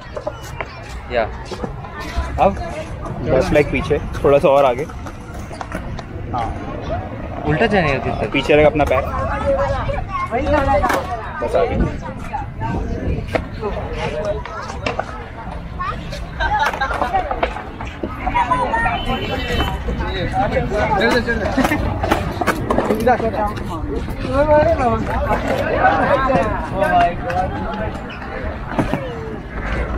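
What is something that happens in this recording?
Young men talk with animation close by, outdoors.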